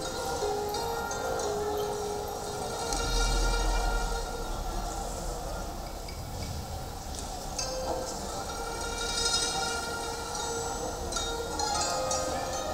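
Slow music plays through loudspeakers in a large echoing hall.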